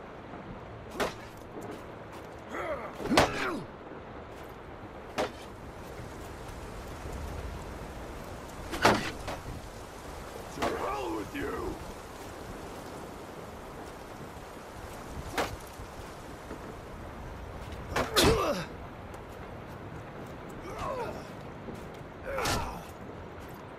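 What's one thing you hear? Wooden weapons strike shields with sharp knocks.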